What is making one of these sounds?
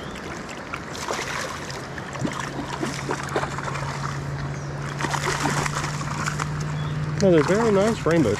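A fish splashes and thrashes in the water close by.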